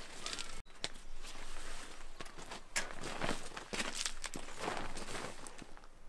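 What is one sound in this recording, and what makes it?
A plastic tarp rustles and flaps as it is shaken out.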